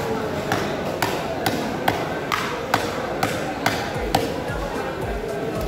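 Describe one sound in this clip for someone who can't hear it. A cleaver chops sharply on a wooden block.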